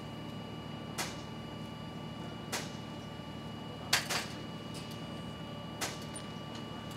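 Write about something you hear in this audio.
Metal parts clank sharply now and then.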